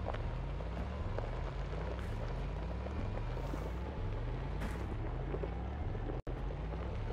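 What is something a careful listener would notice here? A vehicle engine rumbles steadily with a deep hum, rising in pitch again and again.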